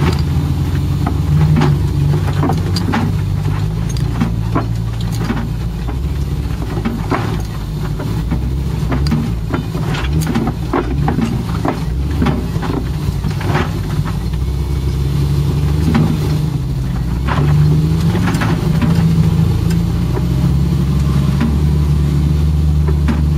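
An off-road vehicle's engine rumbles steadily at low speed.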